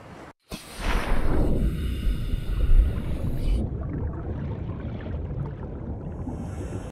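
A low underwater rumble drones throughout.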